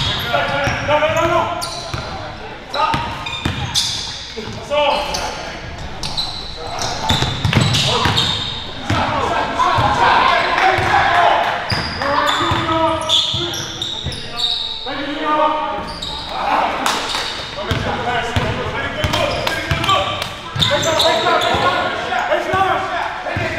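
A basketball bounces on a hard wooden floor in a large echoing gym.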